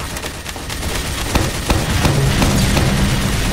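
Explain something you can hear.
A heavy tank rumbles forward.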